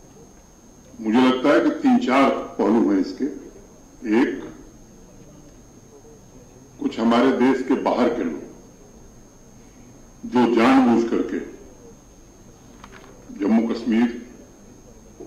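A man speaks into a microphone in short bursts with long pauses.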